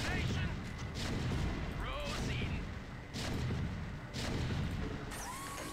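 Explosions boom in short bursts.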